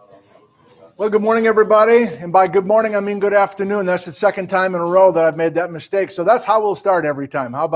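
A middle-aged man lectures with animation into a clip-on microphone.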